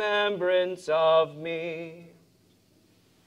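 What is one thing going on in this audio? A man chants in a steady sung voice.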